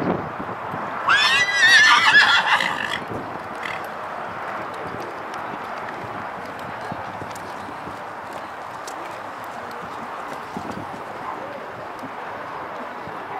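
A horse's hooves thud softly on sand as it canters.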